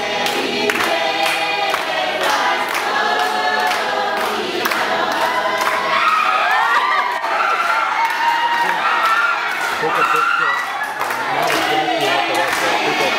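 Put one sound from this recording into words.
A crowd claps rhythmically in a large room.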